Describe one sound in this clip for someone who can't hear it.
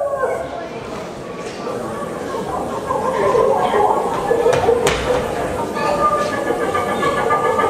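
Boots stamp and shuffle on a wooden stage.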